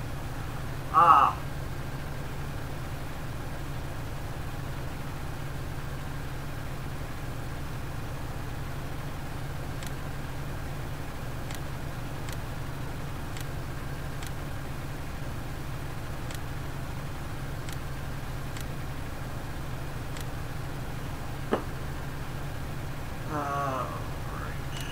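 A man briefly voices a short sound close to a headset microphone.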